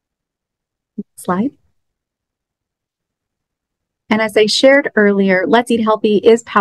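A young woman speaks calmly through an online call.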